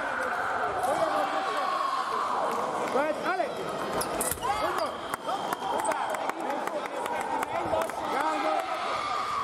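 Sneakers squeak sharply on a hard floor as fencers move.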